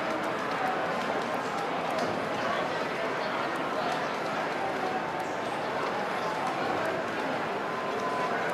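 Arcade machines chime and play electronic tunes nearby.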